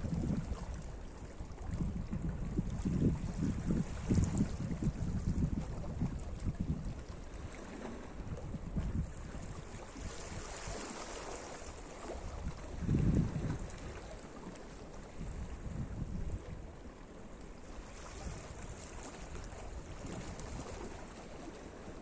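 Small waves lap and wash gently over rocks at the shore.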